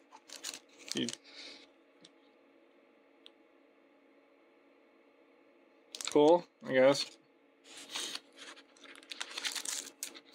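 A plastic wrapper crinkles as it is handled.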